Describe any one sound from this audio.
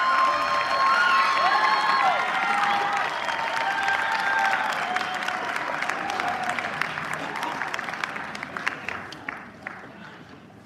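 An audience applauds loudly in a large hall, then the clapping dies away.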